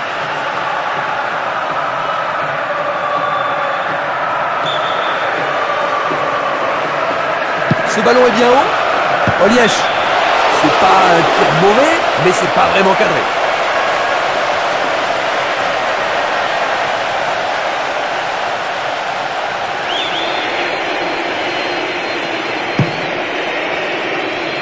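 A large stadium crowd roars and cheers steadily throughout.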